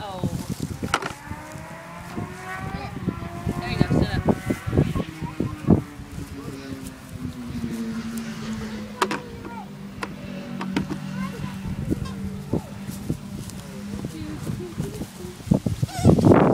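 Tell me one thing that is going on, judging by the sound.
A young woman talks nearby in a cheerful, coaxing voice.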